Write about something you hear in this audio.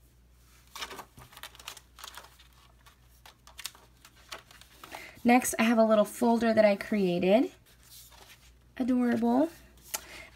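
Paper pages rustle and flip close by.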